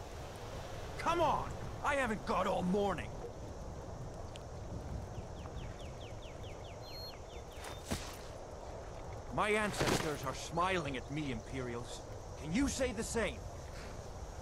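A man speaks in a raised voice nearby.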